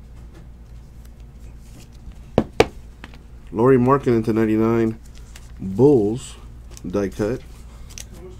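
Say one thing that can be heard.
Plastic card sleeves rustle and crinkle between fingers.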